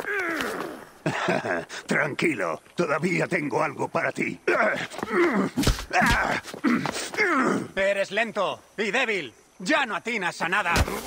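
A second man answers gruffly.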